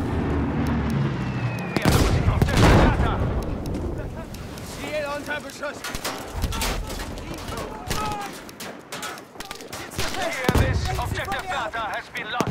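A rifle fires in sharp, loud shots.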